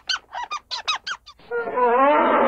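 A squirrel chirps in quick, sharp bursts.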